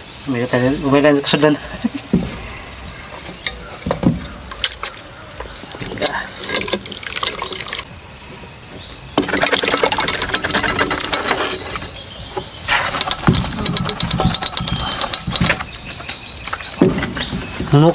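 A metal pot clanks and knocks against hard shells and wood.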